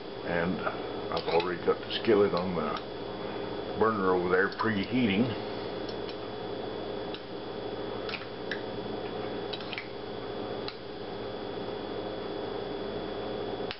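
A fork scrapes and clinks against a glass bowl.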